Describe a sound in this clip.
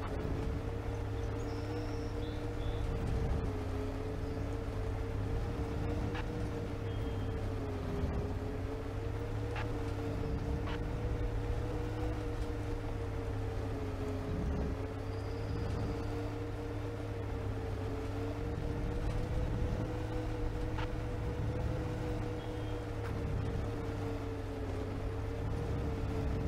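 A bus rattles and thumps over a rough road.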